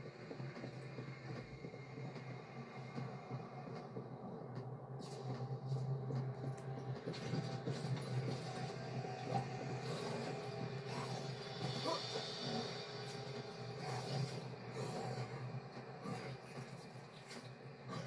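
Video game sound effects rumble and crackle from a television's speakers.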